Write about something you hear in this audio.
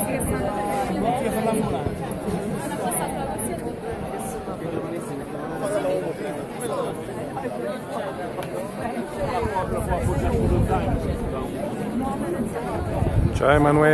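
A large crowd chatters and calls out outdoors.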